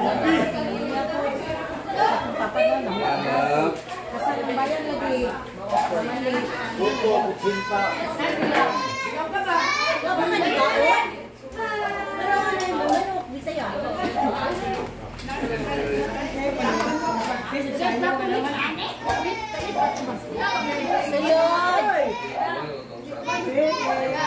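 Several women chat and laugh together nearby.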